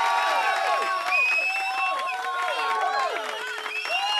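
An audience claps along.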